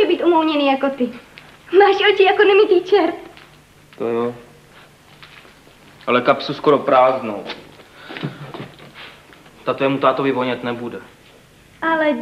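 A young man speaks softly and earnestly, close by.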